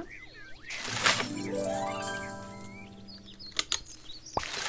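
Game coins jingle as a reward pops up.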